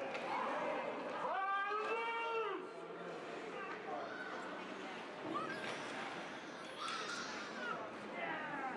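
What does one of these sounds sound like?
Skates scrape and swish across the ice.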